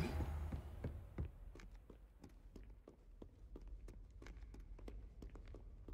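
Footsteps tap steadily on stone stairs.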